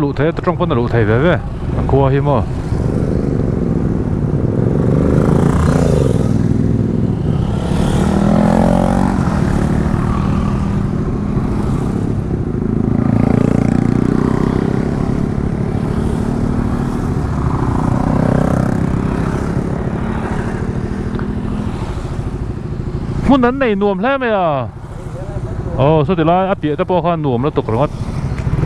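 A nearby motorcycle engine revs up and down sharply.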